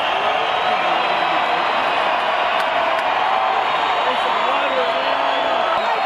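A large crowd cheers and sings along.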